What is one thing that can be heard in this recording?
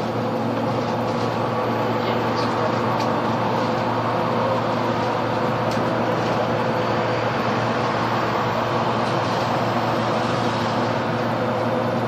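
Tyres roll on the road with a steady rush.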